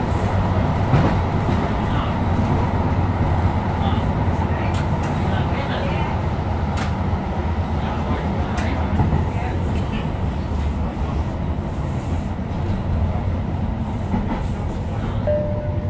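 An electric light rail car rumbles along the track, heard from inside.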